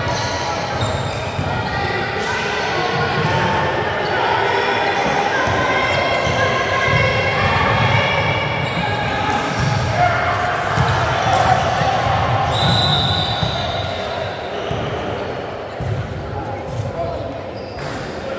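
Young women talk and call out across a large echoing gym.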